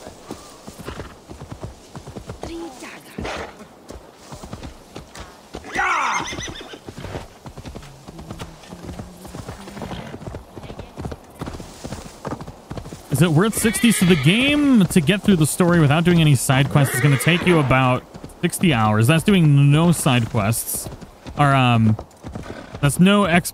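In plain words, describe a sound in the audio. A horse's hooves thud steadily on the ground at a walk and trot.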